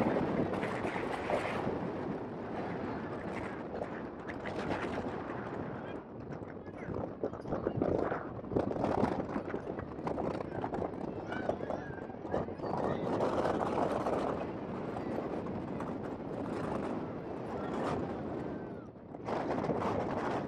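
Spectators chatter and call out across an open field.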